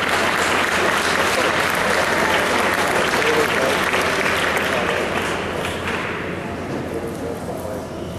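A large crowd applauds in an echoing hall, then the clapping fades.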